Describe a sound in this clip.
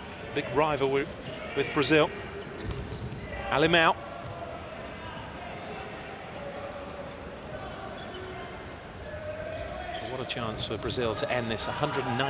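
A crowd chants loudly in bursts.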